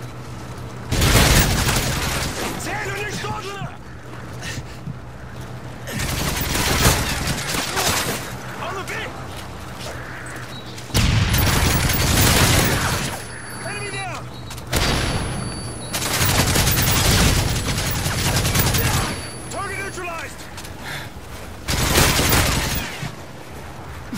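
Guns fire in loud rapid bursts.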